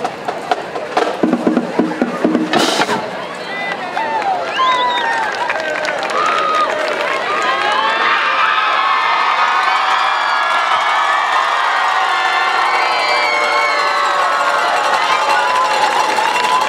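A crowd of young women and girls cheers and screams with excitement outdoors.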